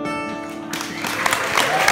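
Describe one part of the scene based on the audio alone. A man plucks an acoustic guitar.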